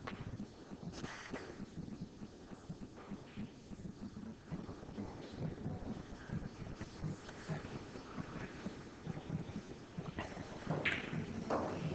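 Pool balls knock against each other.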